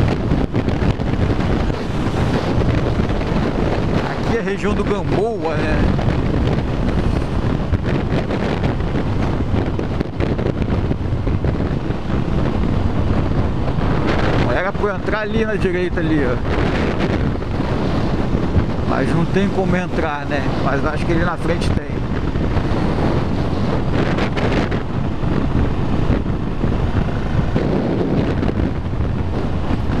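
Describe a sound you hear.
A motorcycle engine hums and revs as it rides along a road.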